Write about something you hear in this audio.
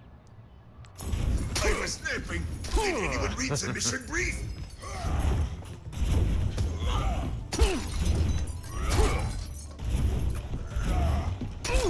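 Gunshots fire rapidly and loudly in a video game.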